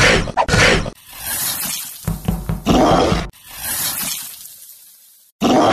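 A monster screeches and roars.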